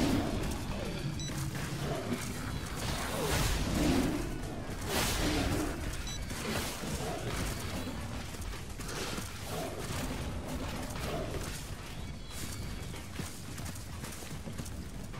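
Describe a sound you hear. Tigers growl and snarl as they fight.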